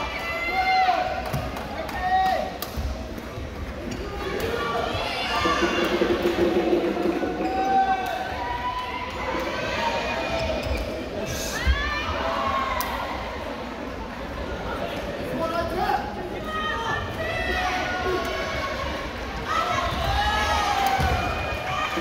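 Badminton rackets sharply smack a shuttlecock now and then.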